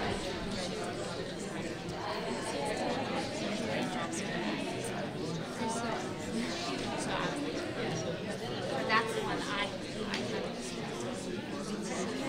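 A large crowd of men and women chatters all at once in a big echoing hall.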